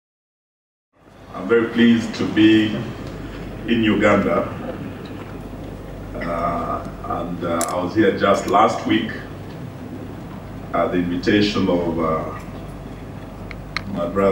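A man speaks steadily through a microphone in a large hall.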